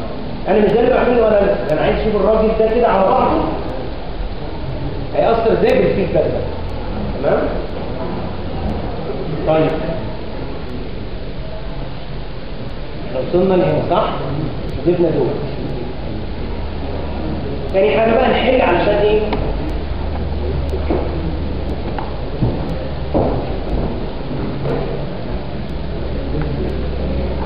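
A man lectures in a room, speaking through a microphone with pauses.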